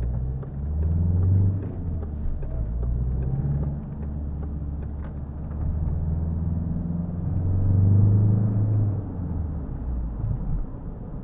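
A car engine revs up and drops back as gears change.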